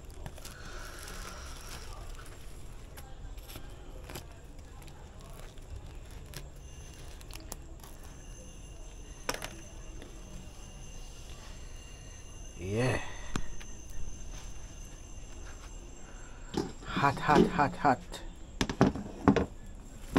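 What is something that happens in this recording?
A plastic bag crinkles.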